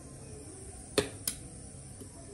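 A jeweller's small metal tool taps twice on metal.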